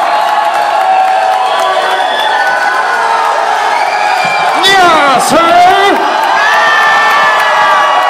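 A man sings and shouts into a microphone over loudspeakers.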